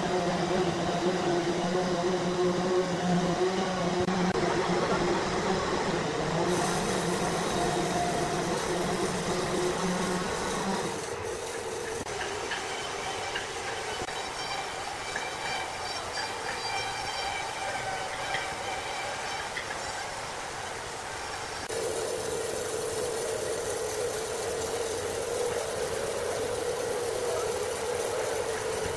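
A large band saw hums steadily as its blade cuts through a thick log.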